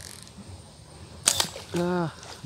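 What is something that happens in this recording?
A slingshot band snaps as a shot is fired.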